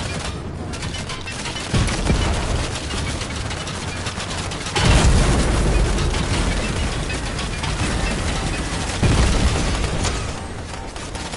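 A tank engine rumbles and roars.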